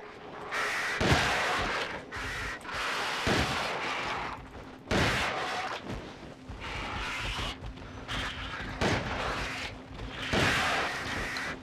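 A shotgun fires loud blasts again and again.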